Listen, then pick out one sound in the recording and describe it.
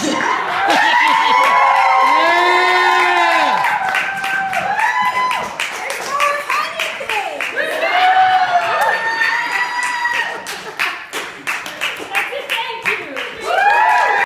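A man claps his hands.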